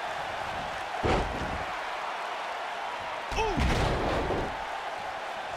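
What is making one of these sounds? A heavy body slams onto a wrestling ring mat with a deep thud.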